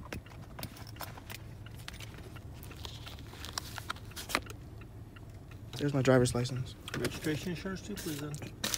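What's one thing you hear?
A car's engine hums steadily while driving.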